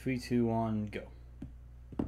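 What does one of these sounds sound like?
A young man speaks loudly with animation, close to a microphone.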